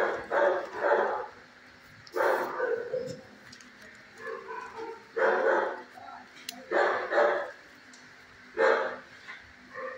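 Dogs bark loudly nearby, in short bursts.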